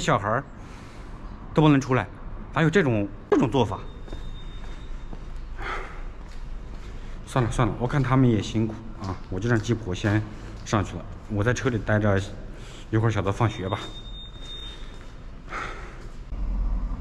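A young man talks close by, with animation.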